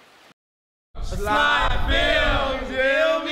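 Young men laugh loudly together close by.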